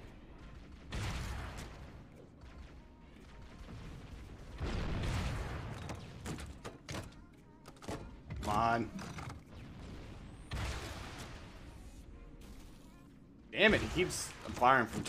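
Heavy gunfire blasts in short bursts.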